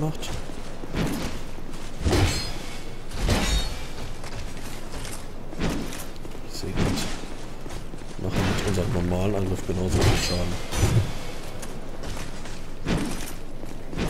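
Swords clash and strike with loud metallic hits.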